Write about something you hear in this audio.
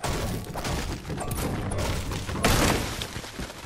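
A pickaxe chops into a tree.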